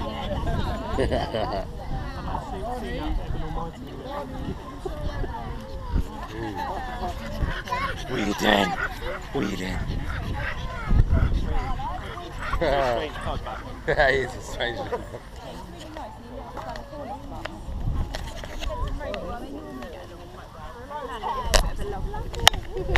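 Many people chat outdoors.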